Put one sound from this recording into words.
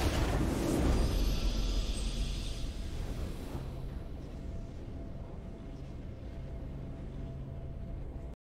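A triumphant fanfare plays and slowly fades.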